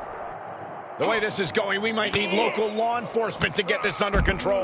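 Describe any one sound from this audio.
Punches thud as two fighters brawl.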